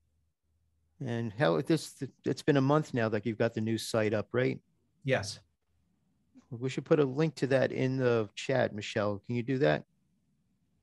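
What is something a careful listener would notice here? An older man speaks calmly and conversationally over an online call.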